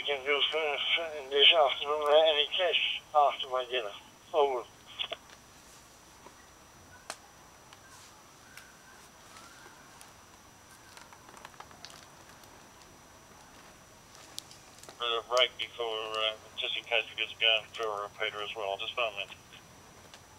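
Speech comes in short, crackly bursts through a radio scanner's small loudspeaker.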